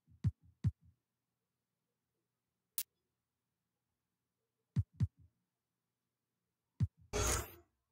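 Short menu clicks sound as a selection moves.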